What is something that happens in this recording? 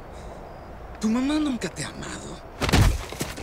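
A man pleads in a strained voice.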